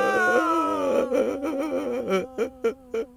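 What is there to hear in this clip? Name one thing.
A young man cries out in anguish.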